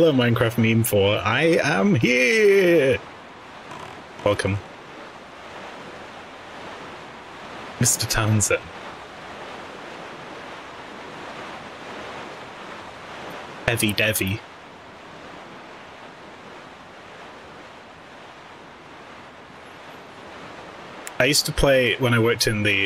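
A small sailboat cuts through the water with a steady rush of waves.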